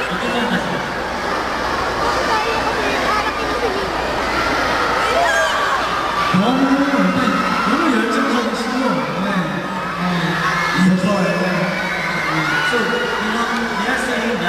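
A crowd of young women screams and cheers.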